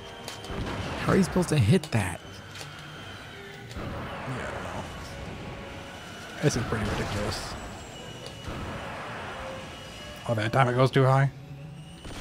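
Rocket blasts boom in loud bursts.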